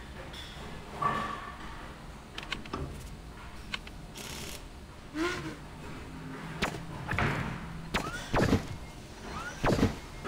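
Short electronic clicks and whooshes sound from a game's menu.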